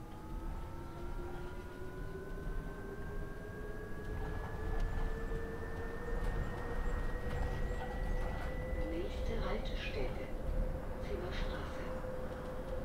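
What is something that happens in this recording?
A bus engine hums and its whine rises steadily in pitch as the bus speeds up.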